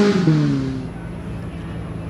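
A rally car's engine revs briefly and drops back.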